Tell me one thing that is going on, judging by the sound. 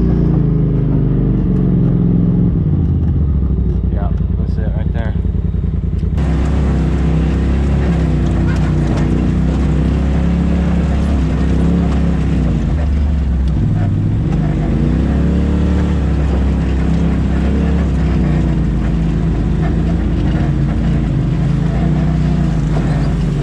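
An off-road vehicle's engine rumbles and revs up and down close by.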